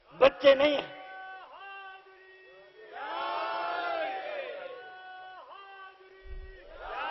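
A man chants mournfully through a microphone.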